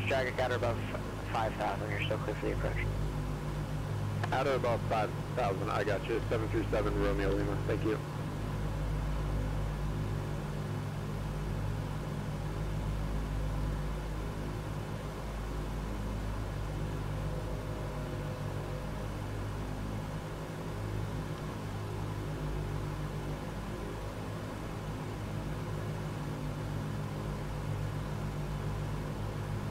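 Aircraft engines drone steadily in flight.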